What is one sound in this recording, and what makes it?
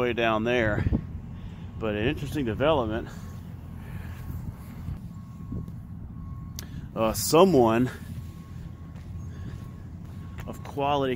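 A man talks casually, close to the microphone, outdoors.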